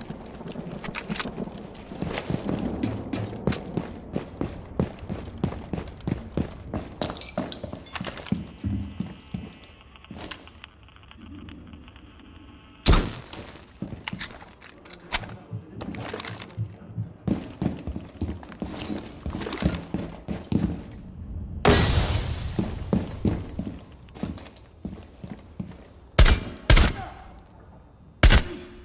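Footsteps thud quickly on hard floors and stairs.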